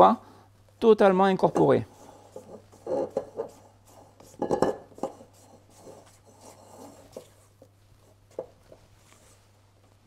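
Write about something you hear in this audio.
A spatula scrapes and taps against a metal bowl while mixing a thick batter.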